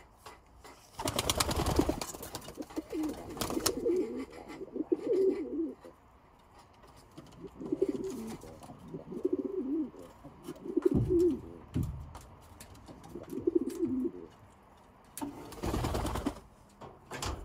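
A pigeon flaps its wings in short bursts.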